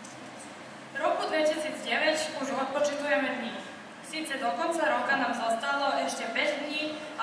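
A young woman speaks calmly into a microphone, reading out.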